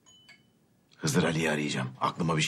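A middle-aged man speaks in a low, serious voice nearby.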